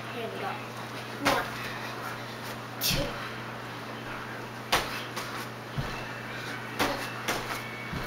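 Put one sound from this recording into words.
Feet thump on a wooden floor as a young girl jumps.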